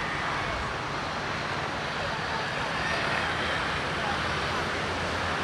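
Traffic hums steadily along a busy city street outdoors.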